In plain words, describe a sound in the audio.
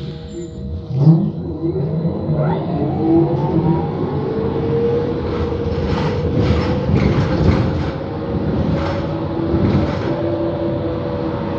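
A bus rattles and rumbles over the road.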